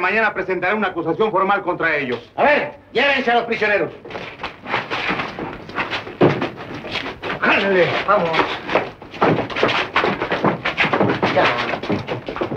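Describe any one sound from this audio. A man speaks sharply and with animation, close by.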